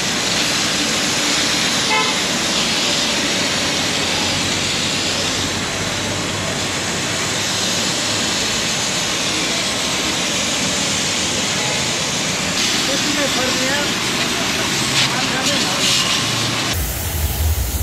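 A high-pressure water jet hisses loudly as it sprays the pavement.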